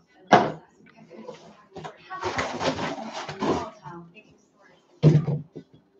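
Contents rustle and clatter as they are lifted out of a cardboard box.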